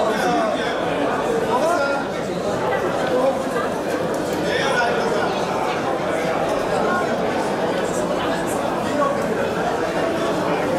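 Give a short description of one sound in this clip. A crowd of people chatters and murmurs.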